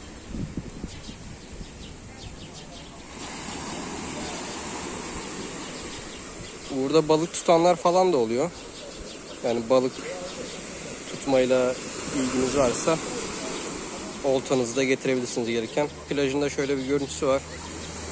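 Sea waves break and wash on a shore.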